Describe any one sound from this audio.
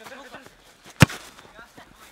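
A football is kicked hard with a thump.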